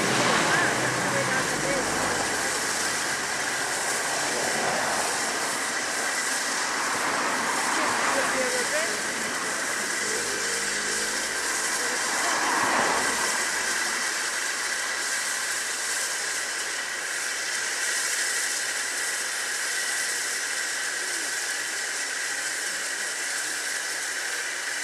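A steam locomotive chuffs heavily as it pulls away.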